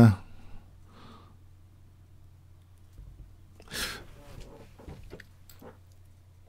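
A middle-aged man speaks in short bursts into a close microphone.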